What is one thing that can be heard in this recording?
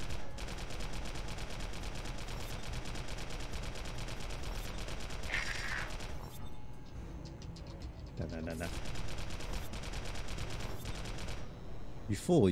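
Rapid gunfire crackles in quick bursts.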